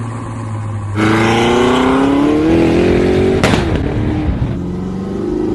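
A sports car engine revs loudly and roars as the car speeds off.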